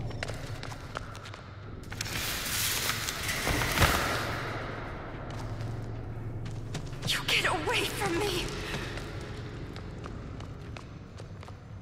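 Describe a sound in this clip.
Footsteps run across a wooden floor.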